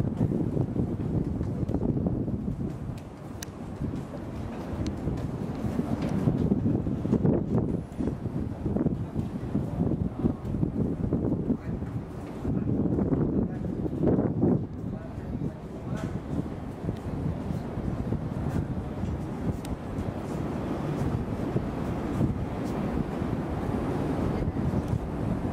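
Wind blows and buffets outdoors high up.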